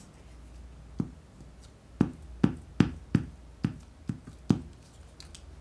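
A plastic cap taps and clicks against a glue bottle.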